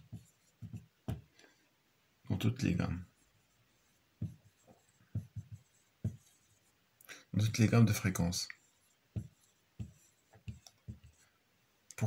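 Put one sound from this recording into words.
A marker squeaks and taps on a whiteboard in short strokes.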